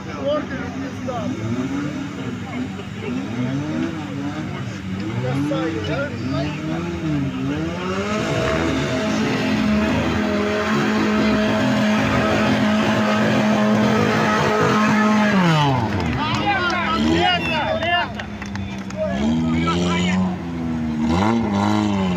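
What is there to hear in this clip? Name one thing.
Off-road engines rev up and down, roaring as they churn through mud.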